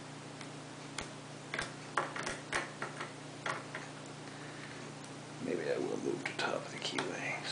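Metal picks click and scrape inside a lock.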